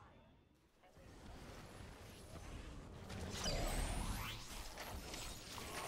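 Energy weapons fire with sharp zaps and bursts.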